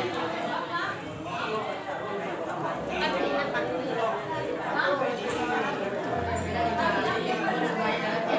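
A crowd of people talk over one another.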